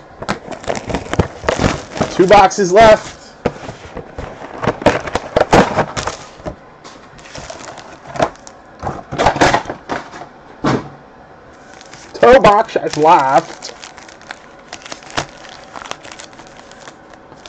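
Foil card packs crinkle and rustle.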